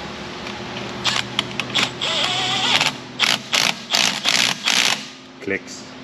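A cordless power ratchet whirs in short bursts.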